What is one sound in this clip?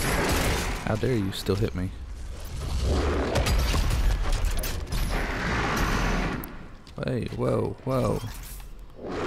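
A monster snarls and growls.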